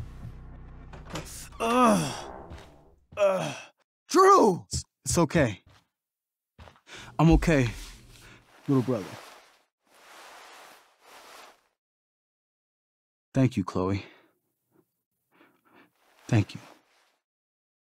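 A young man speaks with concern.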